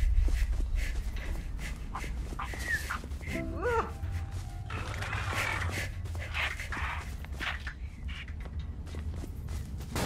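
Footsteps tread steadily along a dirt path.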